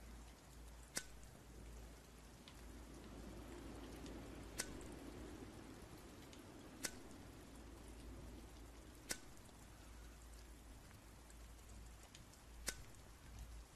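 A lighter clicks now and then as it is flicked.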